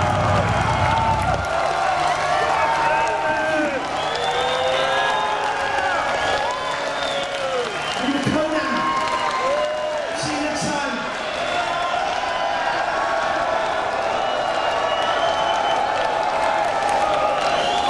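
A large crowd cheers and shouts loudly in an open space.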